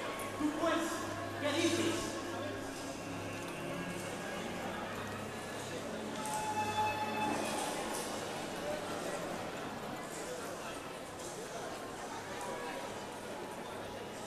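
A man speaks through loudspeakers in a large open space.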